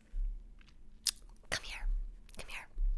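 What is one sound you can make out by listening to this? A young woman whispers close to a microphone with soft mouth sounds.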